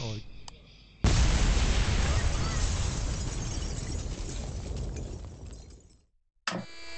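A huge explosion roars and its rumble slowly fades.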